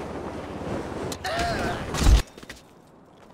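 A body thuds onto a hard roof.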